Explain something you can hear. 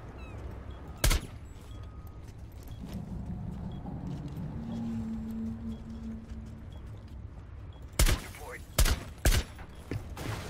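Gunshots ring out loudly in a few sharp bursts.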